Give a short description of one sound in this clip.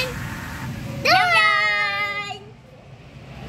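A kitchen appliance plays a short electronic tone.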